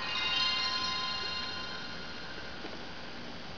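An electronic startup chime rings out from a television speaker and slowly fades.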